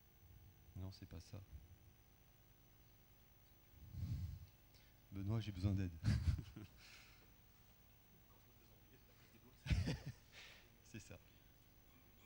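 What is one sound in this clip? A man speaks through a microphone in a large echoing hall, in short bursts with pauses.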